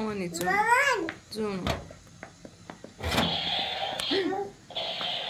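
A young child babbles and talks nearby.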